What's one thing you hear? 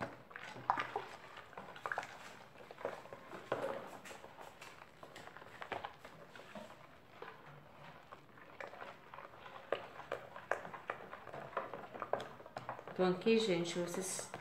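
A spoon stirs and slaps through wet batter.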